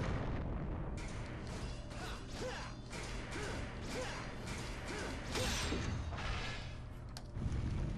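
Bursts of flame whoosh and chime one after another.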